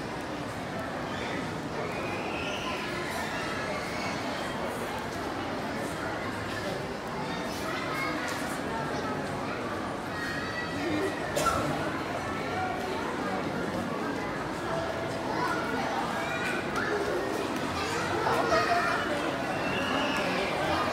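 A crowd of people chatters nearby and in the distance in a large, echoing hall.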